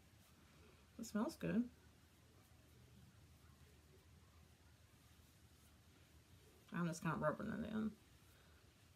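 A woman speaks briefly and calmly, close by.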